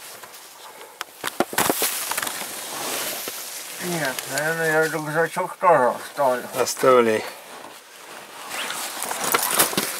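Clothes and boots scrape over loose gravel and stones as people crawl.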